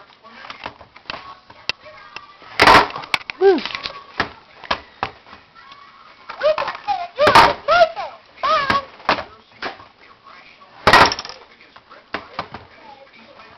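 A baby squeals and babbles excitedly close by.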